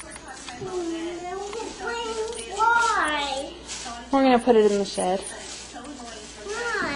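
A little girl talks and sings in a high, excited voice close by.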